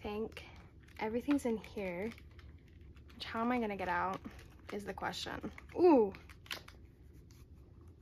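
Thin pages flip and rustle.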